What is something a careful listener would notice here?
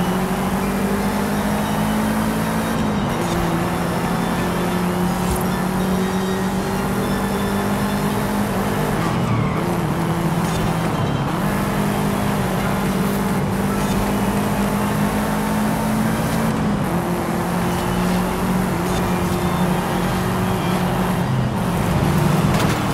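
Tyres hiss on tarmac at speed.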